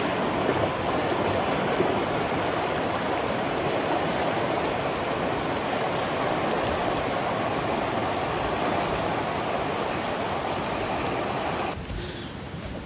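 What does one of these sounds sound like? A fast river rushes and gurgles over rocks.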